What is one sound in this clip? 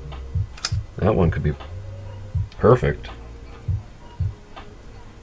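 Small metal parts clink and scrape as they are handled.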